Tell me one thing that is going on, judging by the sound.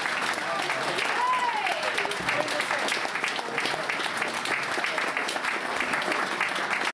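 An audience claps and cheers in a large room.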